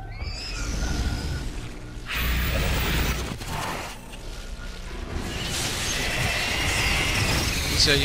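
Heavy claws crash and thud on the ground.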